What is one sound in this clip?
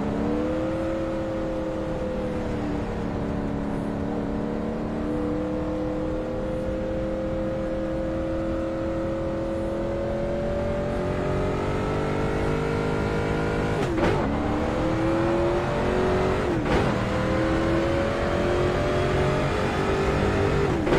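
A race car engine roars steadily, its pitch slowly climbing.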